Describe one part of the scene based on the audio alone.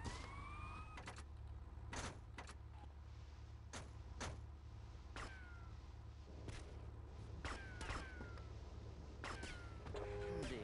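Car doors open and slam shut with sharp thuds.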